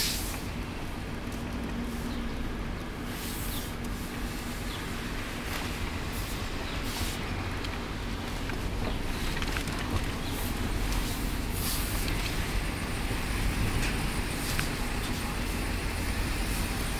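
A car's engine rumbles low as the car rolls slowly, heard from inside the car.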